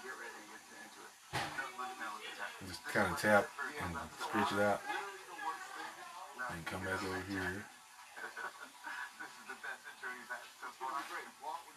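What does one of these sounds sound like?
A small brush scrubs the edge of a shoe sole.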